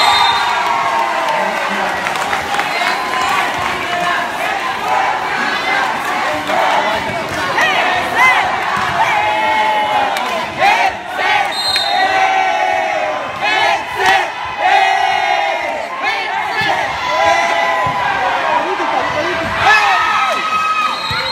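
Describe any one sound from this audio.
Many young people shout and cheer excitedly nearby, outdoors.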